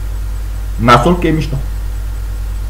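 A young man speaks briefly and loudly close to a microphone.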